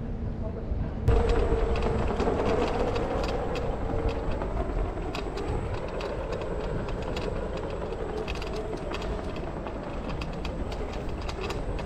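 Wheels roll steadily over pavement with a low rumble.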